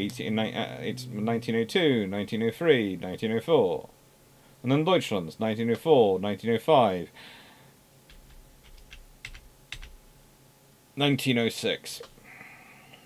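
A man talks calmly and closely into a microphone.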